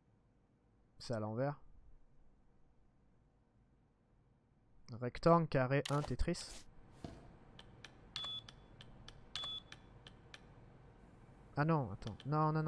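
A man speaks casually into a close microphone, in short bursts.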